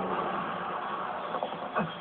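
A man shouts loudly, heard through a television speaker.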